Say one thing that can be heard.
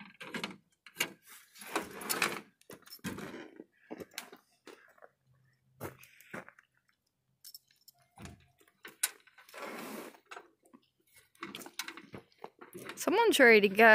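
A metal latch clinks and rattles under a hand.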